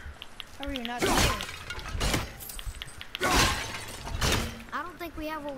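An axe strikes hard in heavy, whooshing blows.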